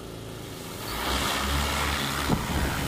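A drone's rotors whir loudly as it lifts off.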